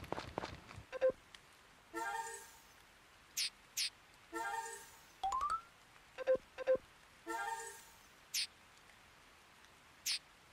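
Short electronic chimes and blips sound one after another.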